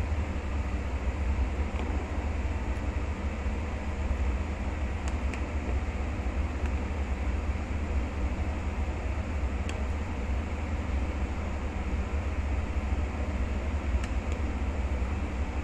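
Broth bubbles and simmers steadily in a pot.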